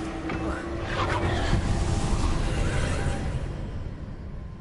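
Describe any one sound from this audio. A heavy chest bursts open with a deep rumbling blast.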